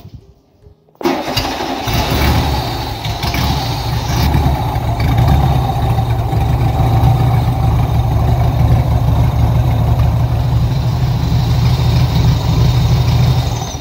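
A small air-cooled car engine starts up and runs with a loud, steady, rattling idle.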